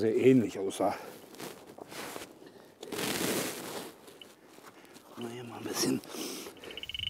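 A spade scrapes and crunches into soil.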